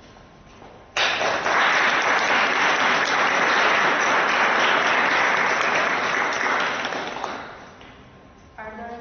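An audience applauds loudly in a room and then fades away.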